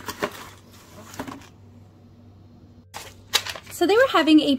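Plastic packets crinkle as they are handled.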